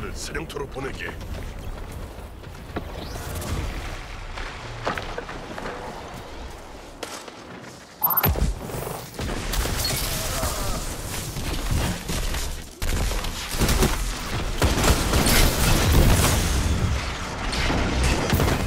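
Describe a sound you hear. A fiery explosion roars in a video game.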